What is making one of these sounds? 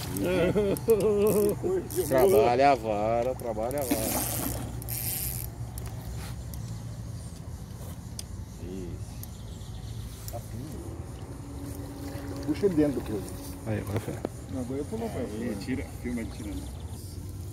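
A large fish splashes in the water.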